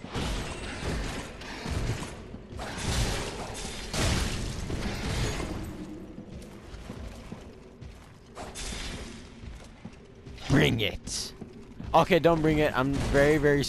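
Swords clash and clang against metal armour.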